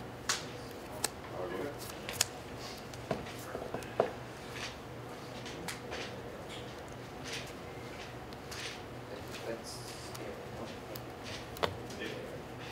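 Cards tap and click against a tabletop.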